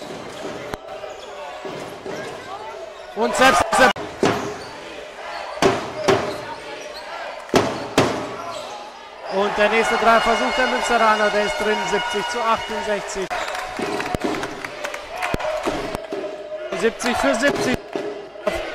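A crowd murmurs and cheers in the background.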